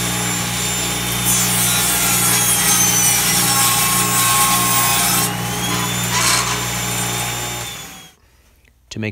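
A table saw whines loudly as it cuts wood.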